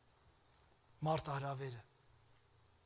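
An elderly man speaks briefly and calmly through a microphone in a large echoing hall.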